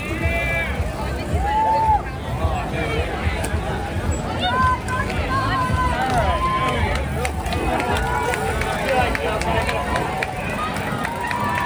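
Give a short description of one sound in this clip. Bicycles roll past over pavement with clicking and rattling.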